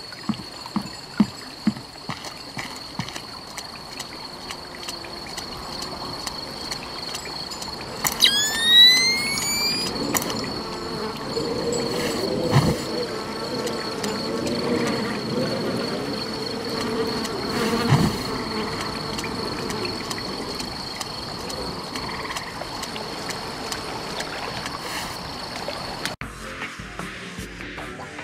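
Footsteps tread softly over the ground.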